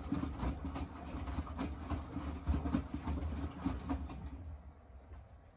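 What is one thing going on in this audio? A washing machine drum tumbles laundry with a loud rumble and thumps, then slows and falls quiet.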